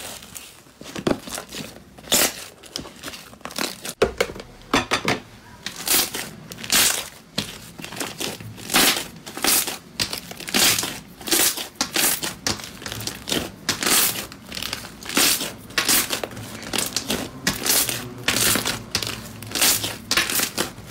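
Soft slime squishes and crackles as hands squeeze and stretch it.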